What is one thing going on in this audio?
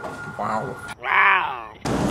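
A cougar gives a high chirping call close by.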